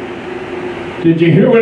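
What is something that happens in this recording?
A man speaks into a microphone, heard through loudspeakers in a room.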